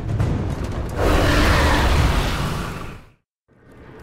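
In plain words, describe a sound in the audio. A monster breathes out a roaring blast of fire.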